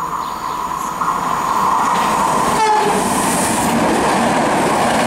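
A high-speed train rushes past with a loud whoosh.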